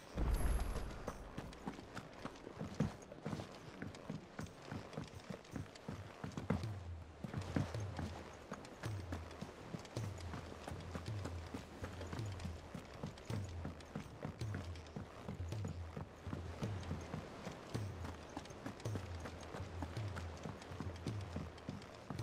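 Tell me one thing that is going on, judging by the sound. Footsteps thump steadily on wooden boards and stone.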